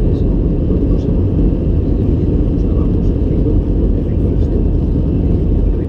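A jet engine roars with a steady low rumble.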